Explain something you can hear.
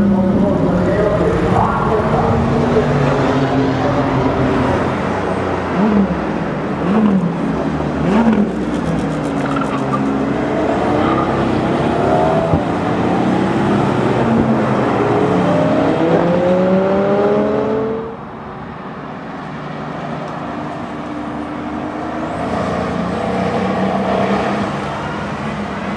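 A powerful sports car engine roars loudly, revving up and down through its gears.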